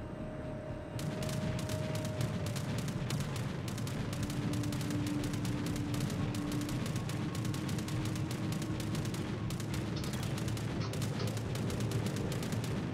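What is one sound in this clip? Anti-aircraft guns fire in rapid bursts.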